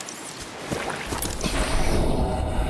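Water churns and sloshes.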